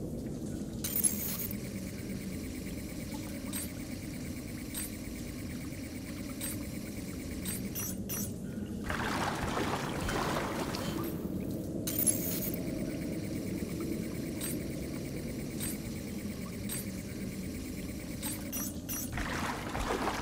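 Electronic static crackles and buzzes with quick beeping pulses.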